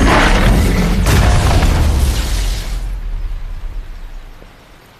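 A deep explosion rumbles and slowly fades.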